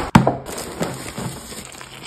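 Powder pours into a bowl.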